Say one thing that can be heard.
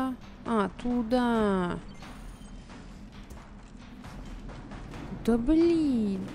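A young woman speaks with animation, close to a microphone, in drawn-out, rising and falling tones.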